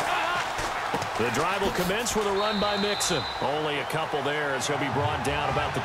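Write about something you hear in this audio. Football players' pads crash together in a hard tackle.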